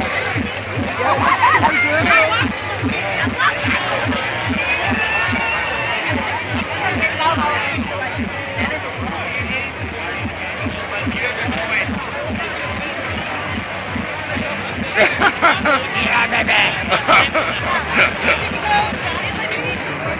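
People in a crowd shout and whoop loudly.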